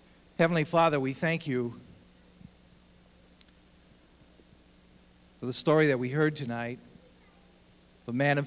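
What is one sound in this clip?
A man speaks calmly into a microphone over loudspeakers, in short phrases with pauses.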